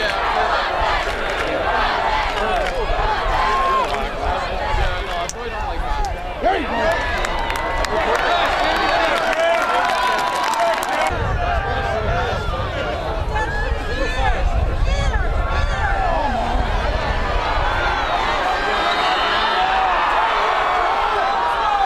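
Young men shout across an outdoor field.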